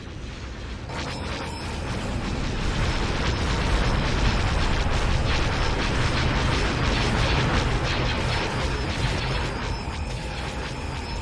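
Starship engines roar as fighters fly past.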